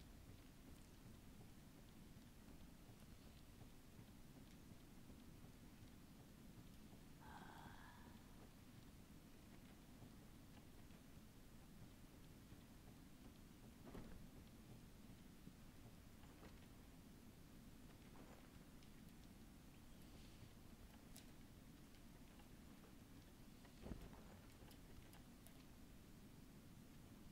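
Light footsteps patter on wooden boards.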